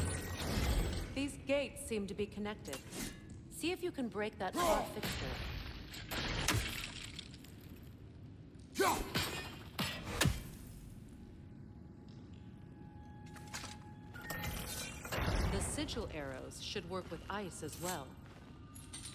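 A woman speaks calmly through a game's sound.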